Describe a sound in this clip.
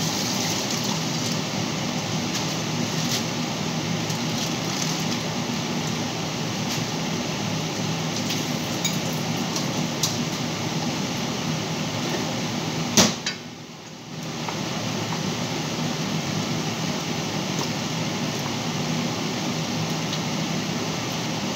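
A gas burner hisses steadily under a pot.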